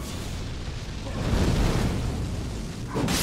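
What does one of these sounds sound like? A shower of sparks bursts with a crash.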